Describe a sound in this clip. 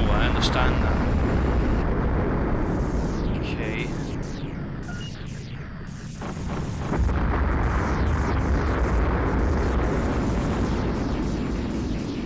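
Laser cannons fire with short zapping bursts.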